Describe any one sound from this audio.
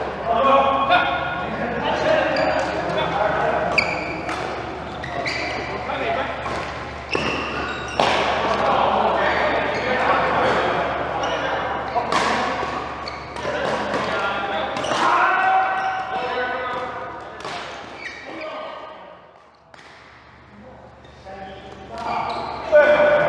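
Shuttlecocks are struck with rackets in sharp pops in a large echoing hall.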